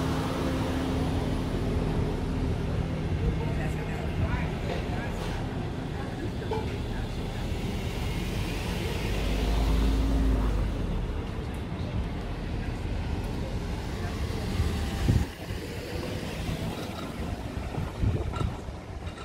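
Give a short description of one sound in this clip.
A quiet town street murmurs outdoors in a light breeze.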